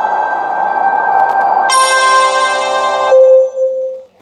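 Gentle game music plays with bright chiming notes.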